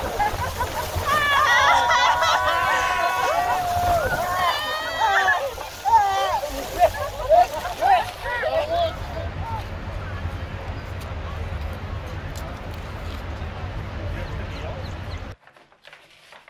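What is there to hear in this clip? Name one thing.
Rushing water roars loudly.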